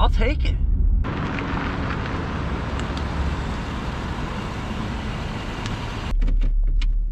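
A car engine runs nearby outdoors.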